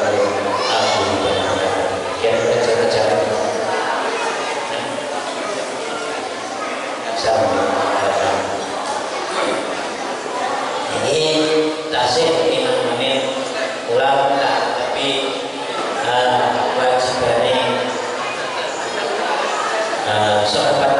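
A middle-aged man chants a recitation steadily into a microphone, heard through a loudspeaker in a reverberant hall.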